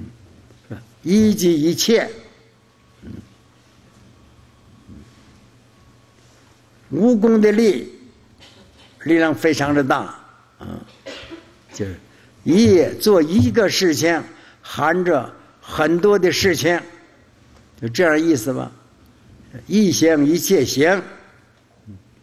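An elderly man speaks calmly and slowly into a microphone, with pauses between phrases.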